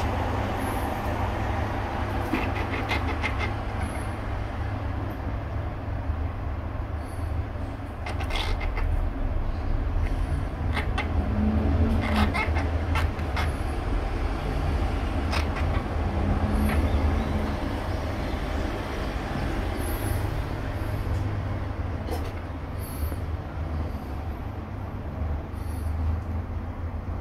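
A baby chipmunk squeaks in short, high chirps.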